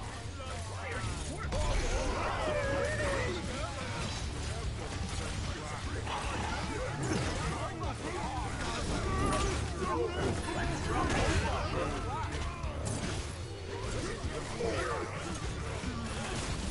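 Magic blasts and impacts crackle in a game fight.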